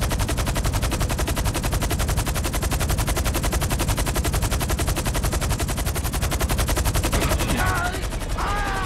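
A helicopter's rotor thumps loudly and steadily.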